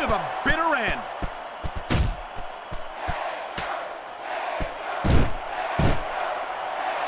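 Heavy thuds of punches and slams land.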